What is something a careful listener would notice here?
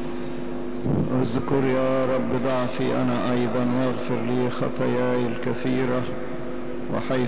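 An elderly man chants into a microphone.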